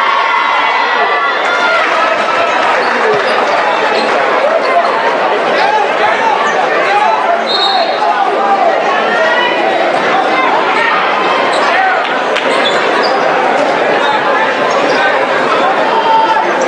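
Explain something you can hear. A large crowd cheers and chatters loudly in an echoing gym.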